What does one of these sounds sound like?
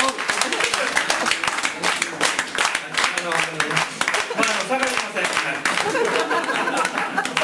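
A small band plays an upbeat tune live.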